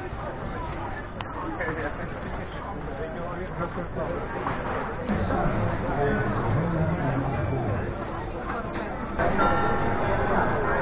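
A busy outdoor crowd murmurs and chatters all around.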